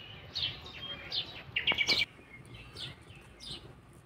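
A hand pats flatbread on a griddle.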